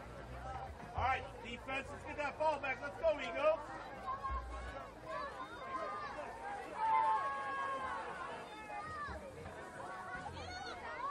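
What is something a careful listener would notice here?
Young men shout loudly outdoors across an open field.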